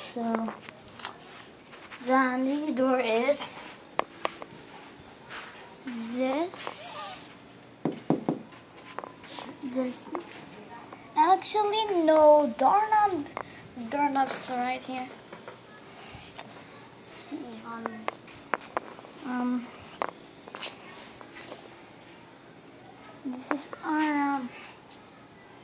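A young boy talks and squeals playfully close to the microphone.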